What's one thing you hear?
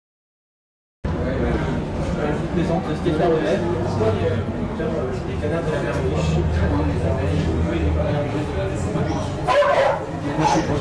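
A young man speaks into a microphone, asking questions in a lively voice.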